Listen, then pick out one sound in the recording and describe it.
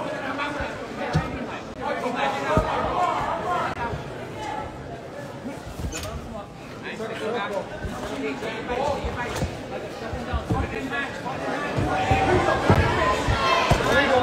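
Punches thud on bare skin.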